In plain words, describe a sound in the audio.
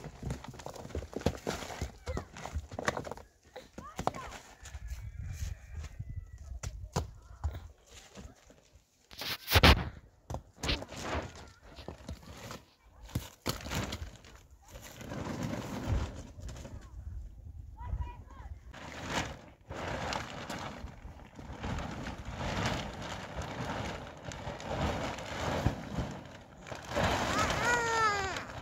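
Plastic sheeting rustles and crinkles as it is handled.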